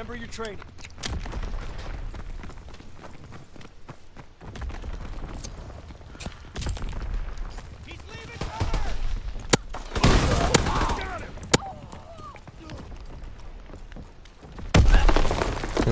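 A shotgun fires loud single shots.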